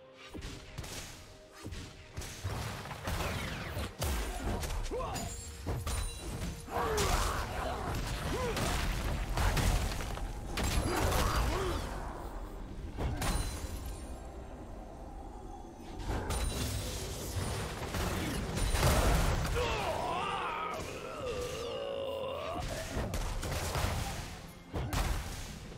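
Video game spell effects burst and crackle in a busy fight.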